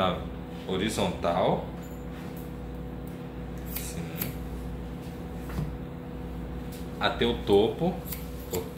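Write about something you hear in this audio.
Scissors snip through wet hair close by.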